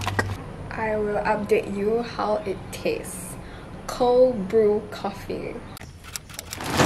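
A young woman talks with animation close to the microphone.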